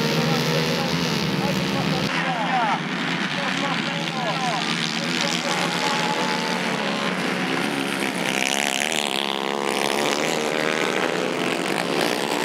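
Racing kart engines rev up and down as the karts race past.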